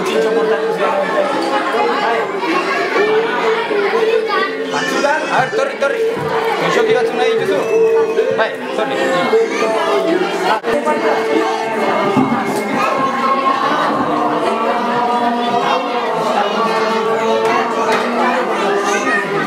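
A crowd of adults and children chatters around, echoing in a large room.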